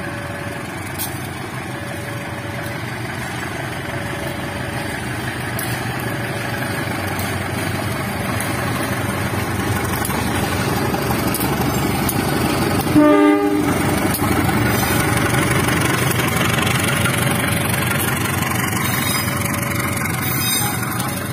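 A level crossing alarm rings in a steady repeating pattern.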